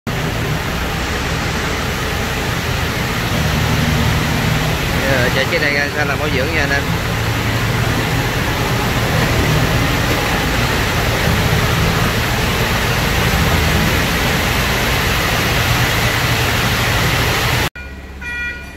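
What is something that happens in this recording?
A large diesel engine runs loudly and steadily nearby.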